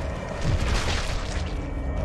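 Water drips and splashes into a pool.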